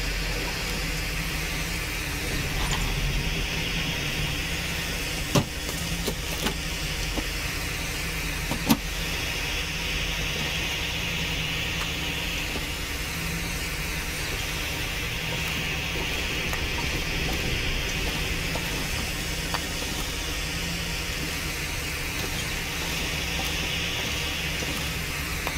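A burning flare hisses and crackles steadily.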